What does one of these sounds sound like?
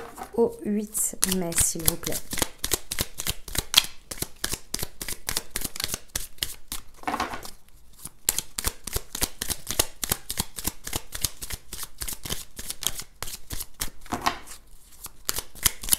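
Playing cards riffle and flick rapidly as they are shuffled by hand.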